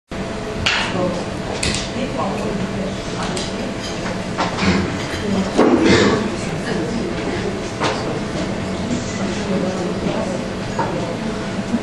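A young man sings into a microphone over loudspeakers.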